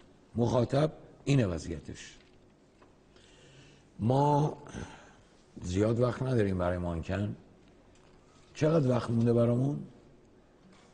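An elderly man speaks with emphasis into a microphone, in short bursts with pauses.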